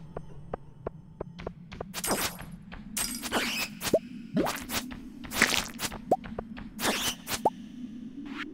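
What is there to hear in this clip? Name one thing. Sharp cracks and clinks of rocks being broken ring out in quick succession.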